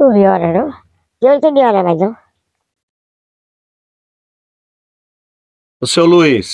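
An elderly woman speaks close by in short phrases.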